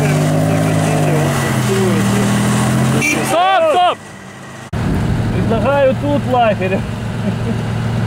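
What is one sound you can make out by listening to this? An off-road vehicle's engine revs hard nearby.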